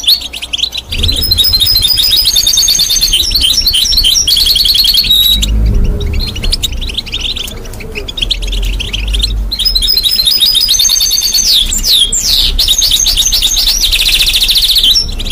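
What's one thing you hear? A parrot's claws and beak rattle against a metal cage.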